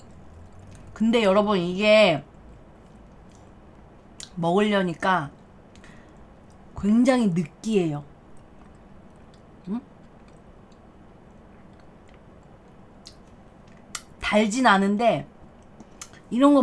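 A young woman talks in short bursts close to a microphone.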